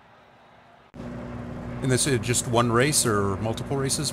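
A racing car engine roars.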